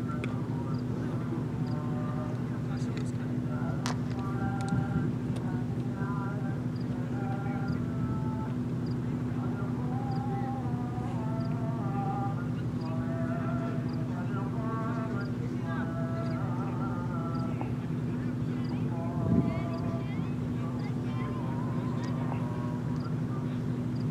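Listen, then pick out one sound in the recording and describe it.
Men call out and talk to each other at a distance across an open field.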